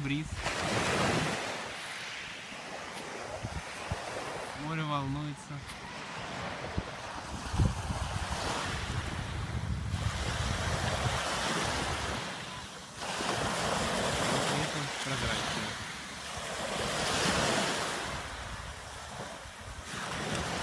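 Small waves break and wash over pebbles, swelling and fading.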